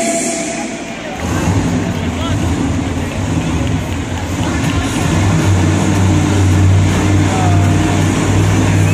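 A large crowd murmurs and cheers in the stands.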